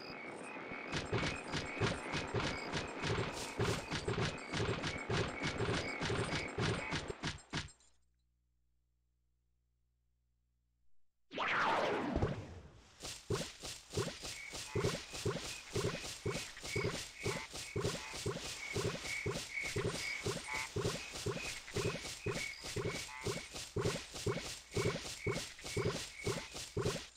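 Quick footsteps patter steadily on the ground.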